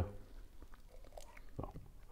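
Beer pours and fizzes into a glass.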